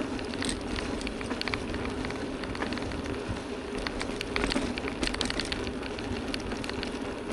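Bicycle tyres roll steadily over a paved path.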